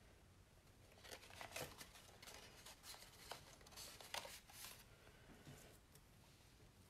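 Card paper rustles and taps as it is handled.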